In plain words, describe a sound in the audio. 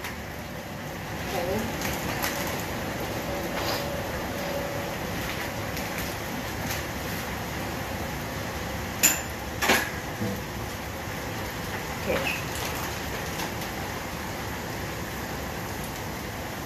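Dishes and utensils clink and clatter close by.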